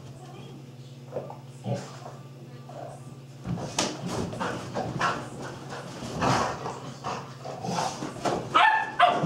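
Dogs scamper and patter about on a floor.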